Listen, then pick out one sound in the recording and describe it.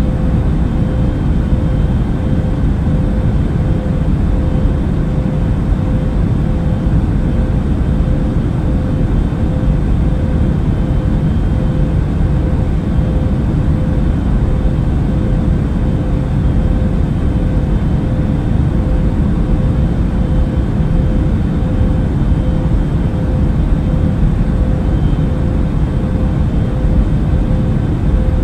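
A steady low engine drone fills an aircraft cabin.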